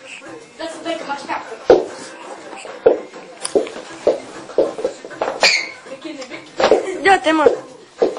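Footsteps shuffle and stamp on a hard floor.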